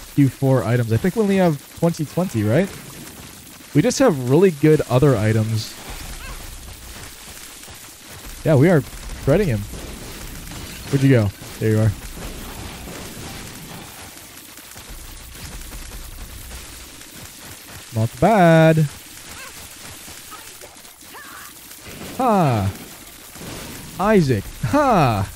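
Game sound effects zap, crackle and pop in quick bursts.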